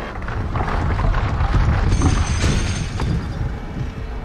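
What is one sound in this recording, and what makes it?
Footsteps run quickly over stone.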